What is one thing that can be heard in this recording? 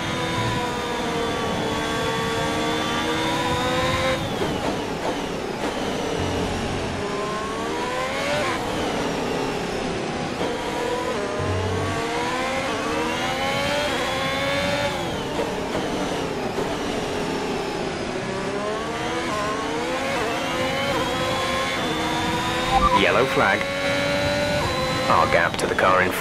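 A racing car engine screams, rising and falling in pitch as it revs up and shifts down through the gears.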